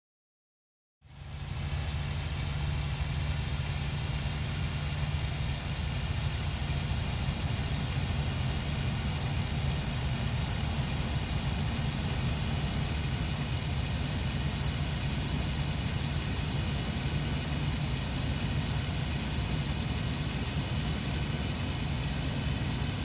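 A propeller aircraft engine roars loudly and steadily from close by.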